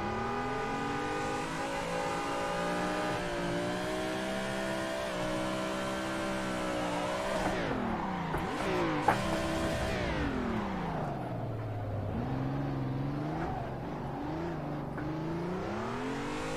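A car engine roars and revs up and down through gear changes.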